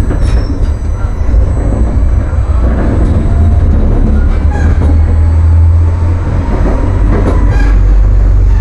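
Tram wheels click over rail joints and points.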